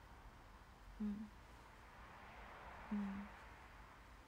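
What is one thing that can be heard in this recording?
A young woman hums softly.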